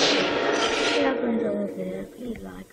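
A loud, harsh screech blares suddenly and then cuts off.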